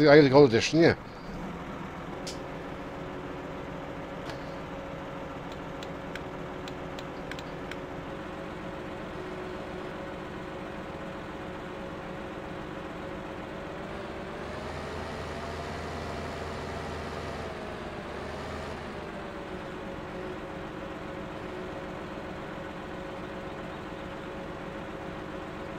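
A heavy machine's diesel engine hums steadily, rising briefly in pitch as it works harder.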